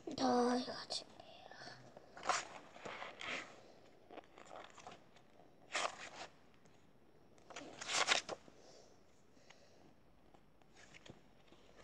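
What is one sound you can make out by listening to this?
Paper pages rustle as they are turned close by.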